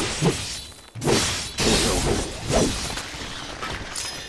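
A sword clangs against metal.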